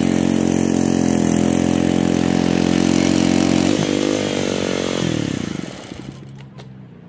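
A petrol lawn mower engine runs loudly close by, then winds down and stops.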